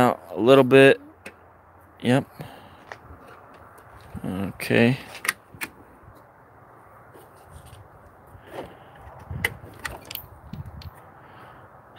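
Metal drawers slide open and shut with clicks.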